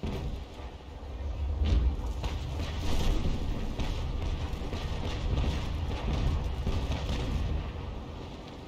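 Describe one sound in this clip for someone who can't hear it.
Cannons fire in a rapid, rumbling barrage.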